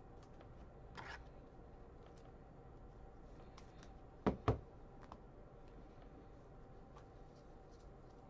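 Trading cards tap and shuffle in hands.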